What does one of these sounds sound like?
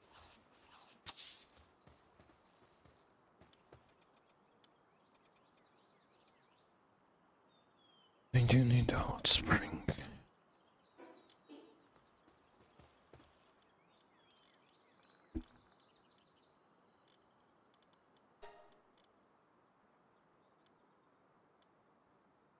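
Soft clicks sound as game menus open and change.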